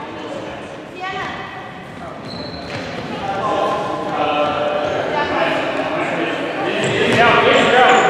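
Sneakers squeak sharply on a hard floor in a large echoing hall.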